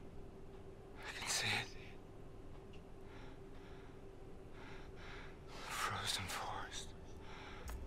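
A man speaks softly and strained, close by.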